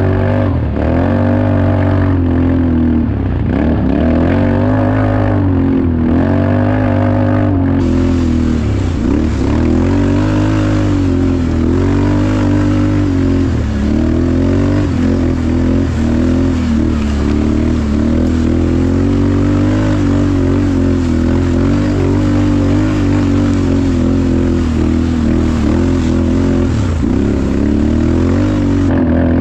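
A quad bike engine roars up close, revving up and down.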